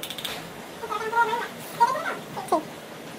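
A young woman giggles close by.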